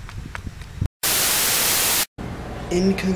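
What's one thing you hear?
Loud static hiss rushes.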